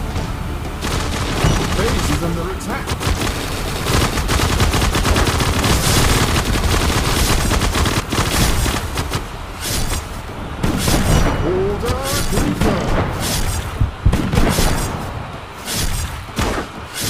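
Rapid gunfire and explosions from a video game blast continuously.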